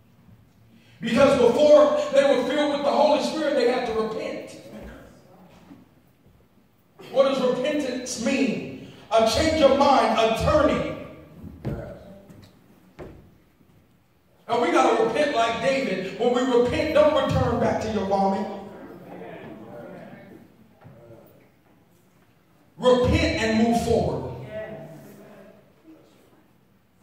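A man preaches with animation into a microphone, heard through loudspeakers in a large echoing hall.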